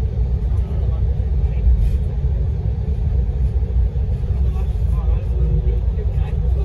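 An aircraft cabin rumbles steadily as a plane taxis.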